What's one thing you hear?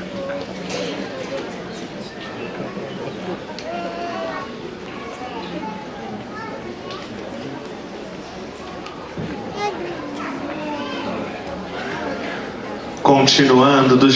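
An audience murmurs and chatters in a large hall.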